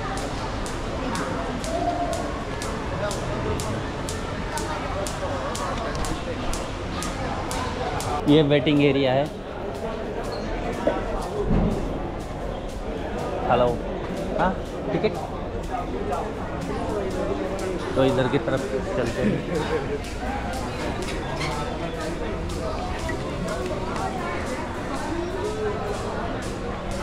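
A crowd of men and women chatters indistinctly nearby.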